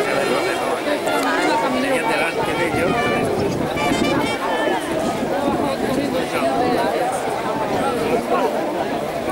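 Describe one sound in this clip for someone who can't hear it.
A crowd of men shout and call out outdoors.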